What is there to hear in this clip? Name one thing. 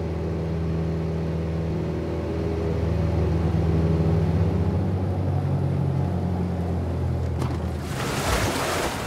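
A propeller plane's engine drones steadily overhead, then fades away.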